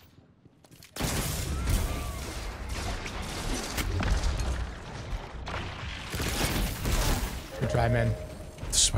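Gunfire and blasts ring out in a video game.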